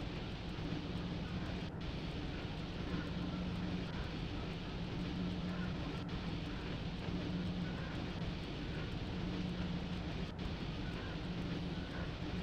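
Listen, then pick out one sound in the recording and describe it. A train rumbles steadily along the rails with a low engine hum.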